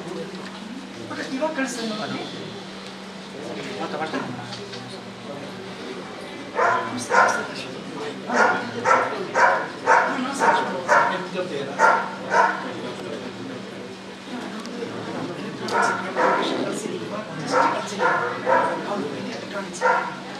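A crowd of men murmur quietly.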